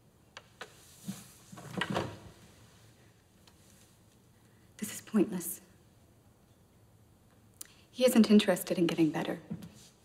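A young woman speaks quietly and tensely, close by.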